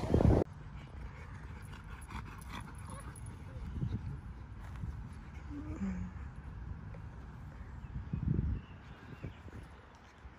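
Dogs run and pant on grass.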